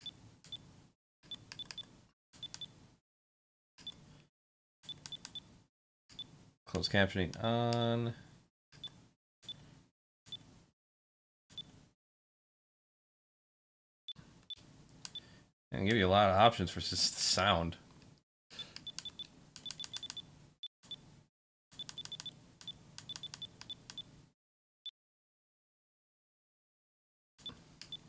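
Short electronic menu beeps sound in quick bursts.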